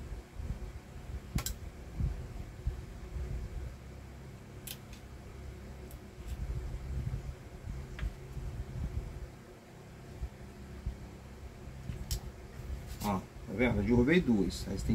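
Small metal parts click and clatter as a man handles them.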